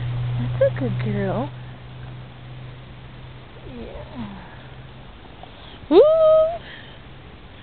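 A puppy whines and yelps close by.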